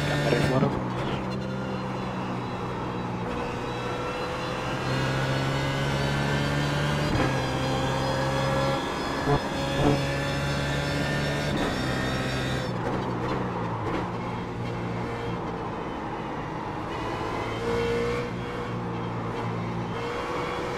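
A racing car engine roars loudly, rising and falling in pitch as gears shift.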